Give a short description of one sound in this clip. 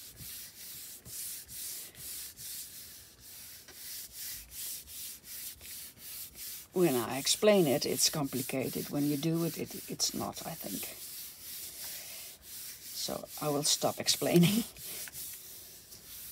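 A hand rubs back and forth over a sheet of paper with a soft, rhythmic swish.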